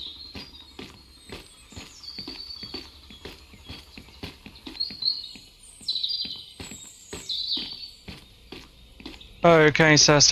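Footsteps walk steadily on hard ground and stairs.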